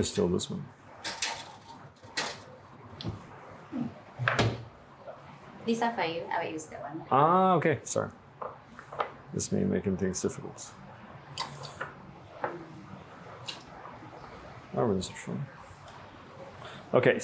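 Dishes and cups clink on a counter.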